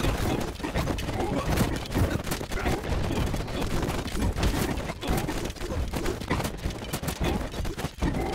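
Arrows whoosh through the air.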